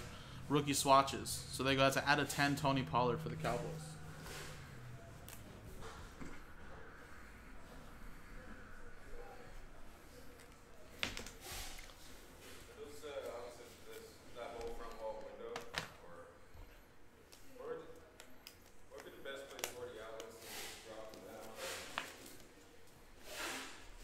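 Cards and wrappers rustle and click in hands.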